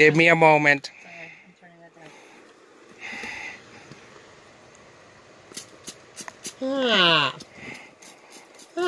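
A spray bottle hisses in short squirts.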